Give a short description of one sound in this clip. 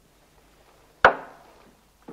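A sharp knock sounds on a board.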